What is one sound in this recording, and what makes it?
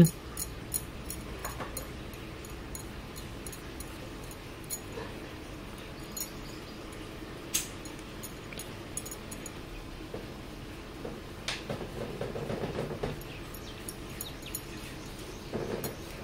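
Metal bangles clink and jingle.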